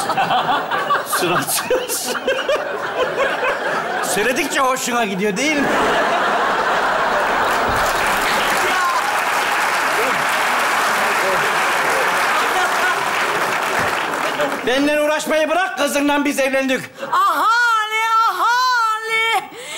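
A woman speaks dramatically through a microphone.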